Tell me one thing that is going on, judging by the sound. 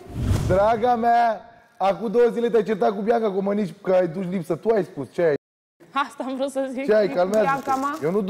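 A young man speaks with animation through a microphone.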